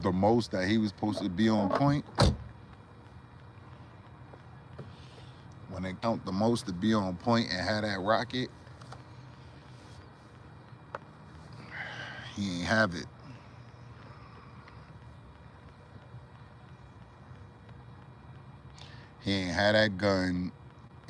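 A young man talks casually, close up.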